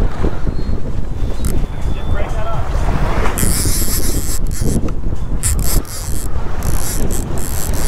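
Waves slosh and splash against a boat's hull.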